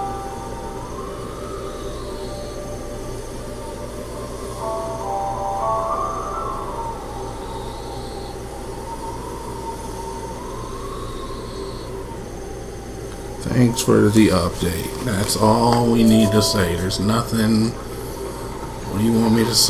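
Soft, gentle game music plays in the background.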